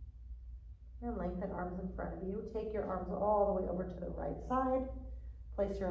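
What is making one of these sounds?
A woman speaks.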